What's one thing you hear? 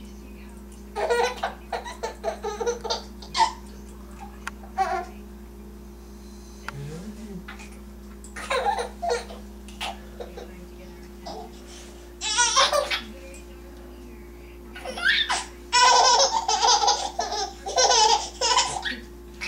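A man talks playfully and laughs close by.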